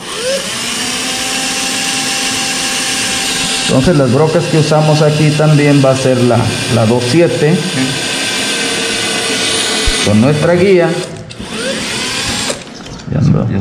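A power drill whirs steadily.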